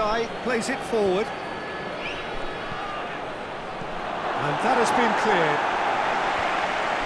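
A stadium crowd murmurs and then roars louder.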